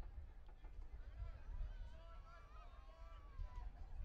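Players call out to each other at a distance.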